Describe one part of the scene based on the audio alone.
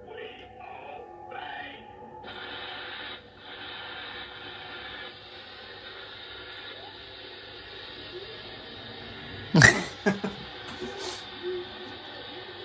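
A television programme plays through a loudspeaker.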